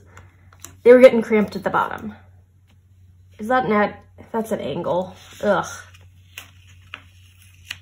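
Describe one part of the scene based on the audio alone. Paper rustles softly as hands press it flat.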